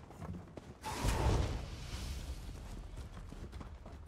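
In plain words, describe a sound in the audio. A sharp magical blast bursts during a fight.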